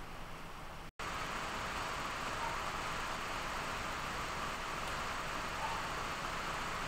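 A small computer fan whirs louder and faster.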